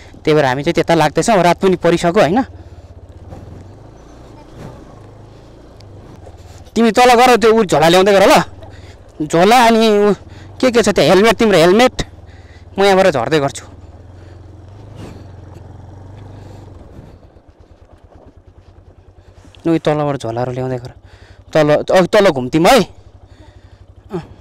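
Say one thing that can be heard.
A motorcycle engine rumbles low and steady.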